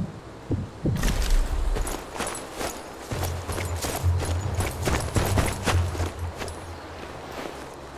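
Footsteps crunch quickly over grass and gravel.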